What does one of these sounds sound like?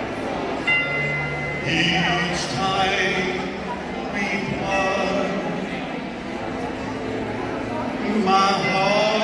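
A man sings into a microphone through loudspeakers in a large echoing hall.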